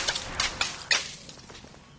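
Small birds chirp.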